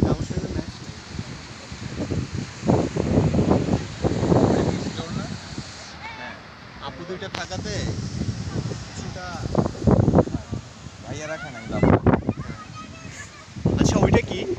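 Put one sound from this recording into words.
Wind blows across the microphone in gusts.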